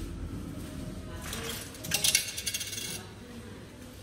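Buttons on a ticket machine click as they are pressed.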